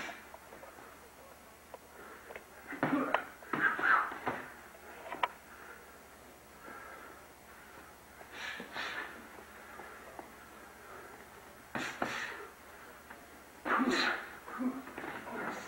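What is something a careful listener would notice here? Sneakers squeak and shuffle on a padded floor.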